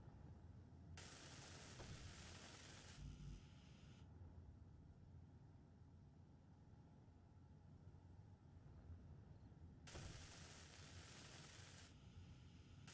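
A welding tool hisses and crackles in short bursts.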